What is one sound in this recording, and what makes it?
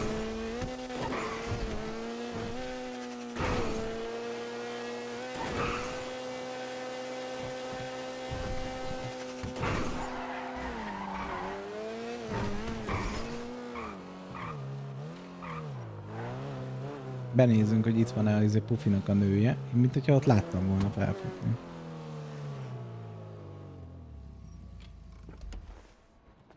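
A car engine roars steadily at high speed, then winds down and idles.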